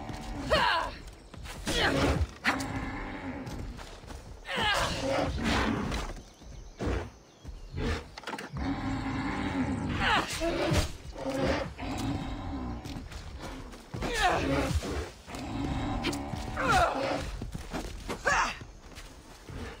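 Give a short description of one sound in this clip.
A large stag bellows loudly.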